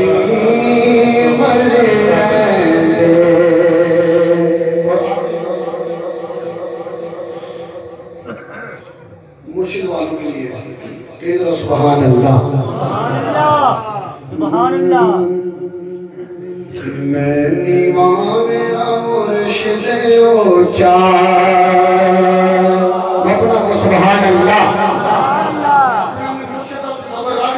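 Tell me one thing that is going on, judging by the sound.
A man sings a melodic chant into a microphone, heard through loudspeakers in an echoing hall.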